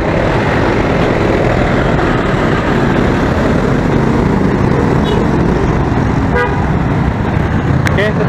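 Motorbikes buzz past in street traffic.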